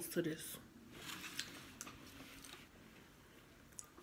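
A woman chews a mouthful of cheesecake close to the microphone.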